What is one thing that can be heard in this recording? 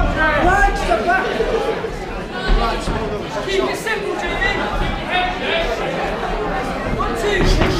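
A crowd of men and women shouts and cheers in an echoing hall.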